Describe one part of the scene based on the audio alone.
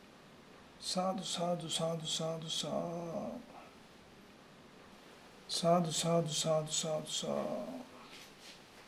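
A man speaks in a low voice close by.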